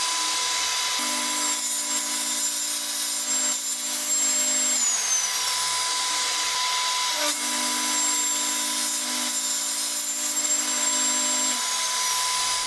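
A table saw blade cuts through wood, pushed slowly along in long passes.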